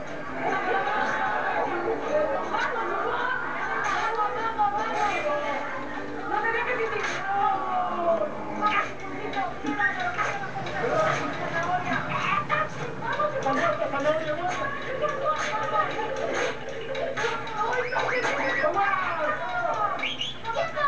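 A crowd of people shout and laugh with excitement, heard through a television speaker.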